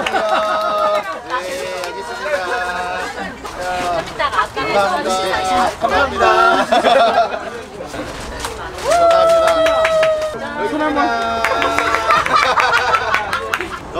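A man talks cheerfully, close by.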